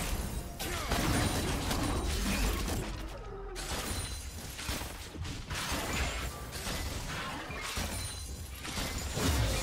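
Spell effects whoosh and blast in a fast-paced game battle.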